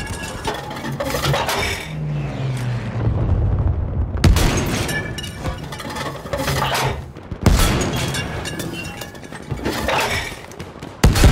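A shell explodes in the distance.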